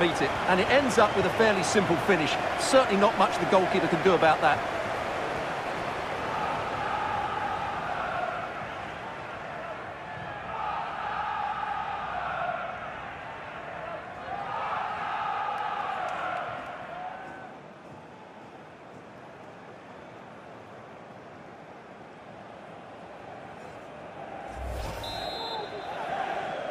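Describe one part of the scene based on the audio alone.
A large crowd cheers and roars in a big stadium, swelling in waves.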